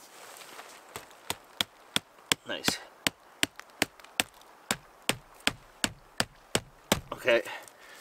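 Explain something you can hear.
An axe back taps a wooden stake into the ground in quick, steady blows.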